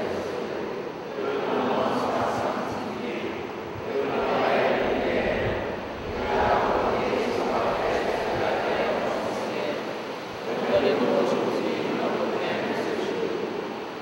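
A choir sings together in an echoing hall.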